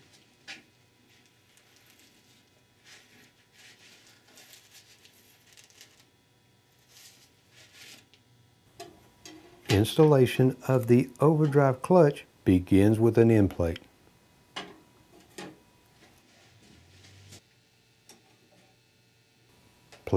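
Metal clutch plates clink and clatter as they are handled.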